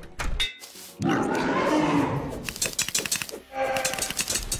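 Electronic zaps and crackles of magic bolts sound in quick bursts.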